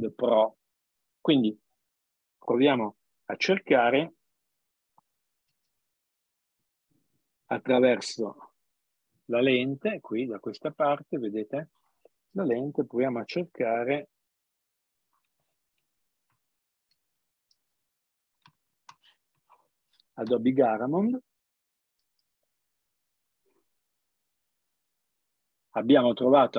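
An elderly man speaks calmly over an online call, in short bursts with pauses.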